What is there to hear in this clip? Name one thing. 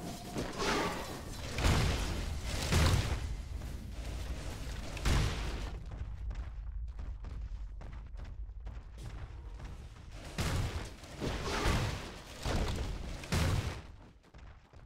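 Magic blasts and weapon strikes burst loudly in a battle.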